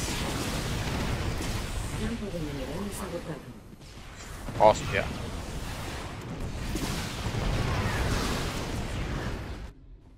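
Explosions and gunfire crackle in a battle.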